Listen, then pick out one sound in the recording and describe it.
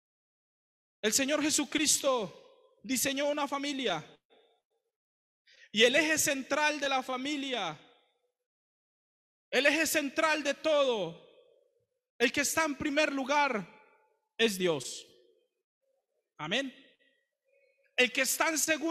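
A young man speaks with animation into a microphone, heard through loudspeakers in an echoing hall.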